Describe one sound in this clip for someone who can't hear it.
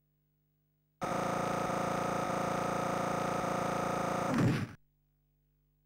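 A video game's bonus tally plays a steady, buzzing electronic tone that ends with a short burst.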